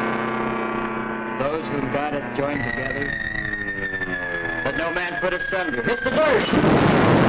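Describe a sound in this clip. A man reads aloud solemnly in an echoing hall.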